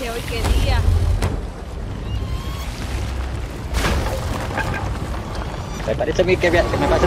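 Sea waves wash and rumble against a wooden ship.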